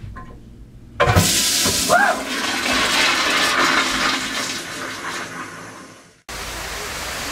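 A toilet flushes with a loud rush of water.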